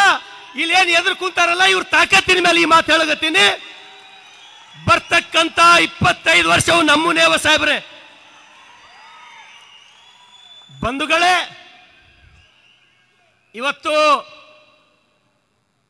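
A man speaks forcefully through a loudspeaker in a large echoing hall.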